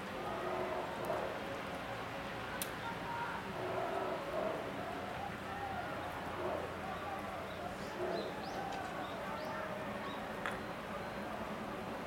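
A crowd of men and women chatter at a distance outdoors.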